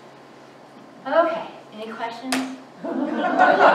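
A young woman speaks cheerfully nearby.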